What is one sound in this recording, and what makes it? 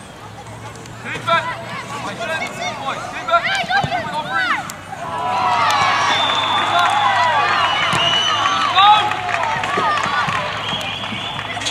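Young players shout to each other across an open outdoor pitch.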